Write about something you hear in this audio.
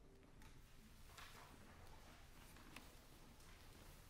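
Paper pages rustle as sheet music is turned.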